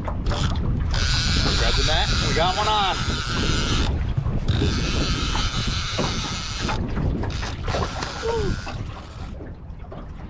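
A fishing reel's drag buzzes as a fish pulls line.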